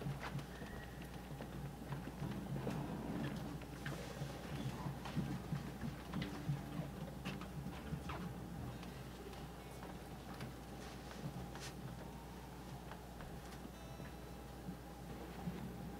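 Footsteps shuffle on a wooden stage.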